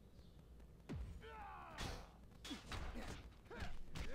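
A burst of energy whooshes and crackles.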